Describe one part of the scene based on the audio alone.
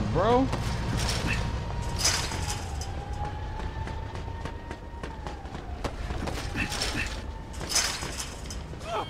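A chain-link fence rattles as someone climbs over it.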